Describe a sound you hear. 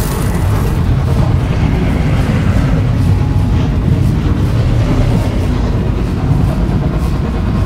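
An energy blade hums and whooshes as it swings.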